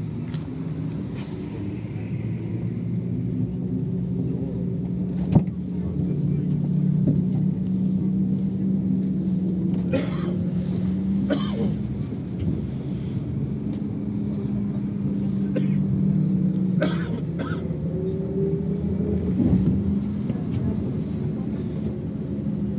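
Cars pass by outside on the road.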